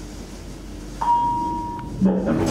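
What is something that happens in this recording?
An elevator chime dings once.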